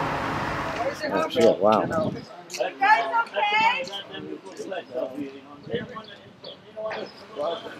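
Young women talk excitedly nearby.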